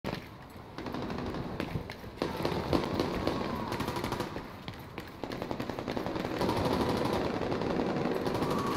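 Footsteps run quickly over hard pavement.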